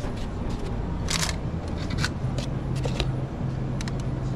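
Metal tongs click against serving trays.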